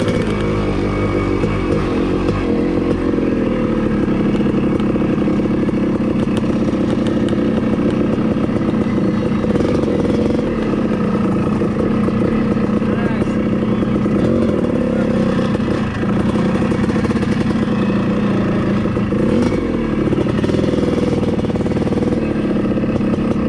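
A dirt bike engine revs and putters close by, shifting in pitch.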